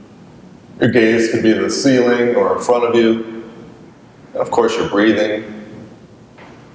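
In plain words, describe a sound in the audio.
A man speaks calmly, giving instructions, heard through a microphone.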